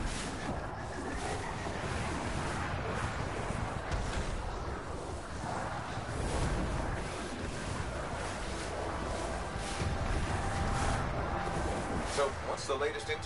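A jet thruster roars steadily.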